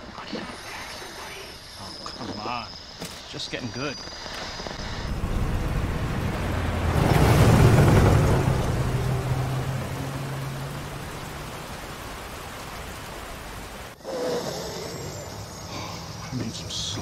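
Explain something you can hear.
A man with a deep voice speaks in a low, weary tone.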